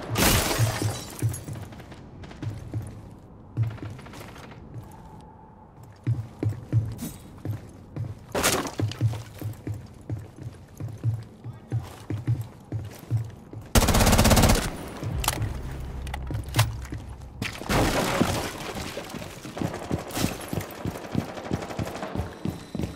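Footsteps thud quickly and steadily.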